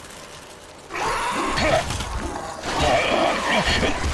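A monstrous creature roars up close.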